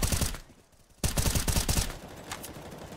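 Rapid rifle shots fire in a short burst.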